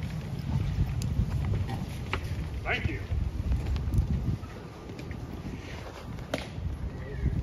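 Hard shoe heels click sharply on stone as a soldier marches.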